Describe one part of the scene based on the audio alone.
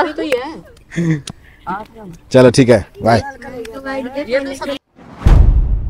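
Young boys talk and laugh close by, outdoors.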